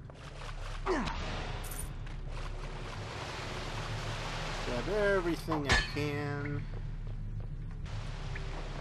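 Water sloshes and splashes as a cartoon character wades through it.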